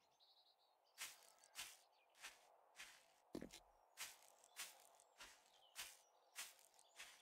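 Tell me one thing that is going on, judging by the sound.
Footsteps tread on grass.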